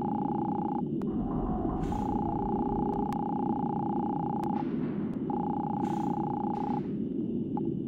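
A steady electronic tone hums.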